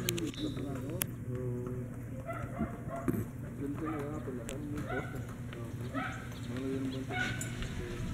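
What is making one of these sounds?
Horse hooves thud slowly on a dirt path.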